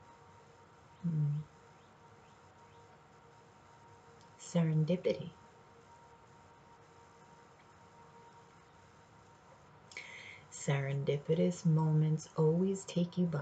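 A woman speaks close to a microphone in short bursts, calmly.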